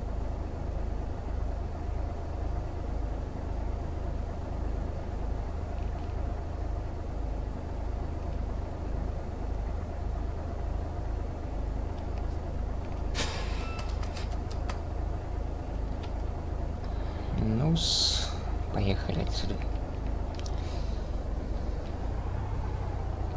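A truck's diesel engine idles with a steady, low, throbbing rumble.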